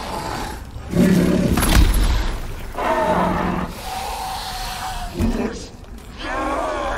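A large creature growls and roars loudly.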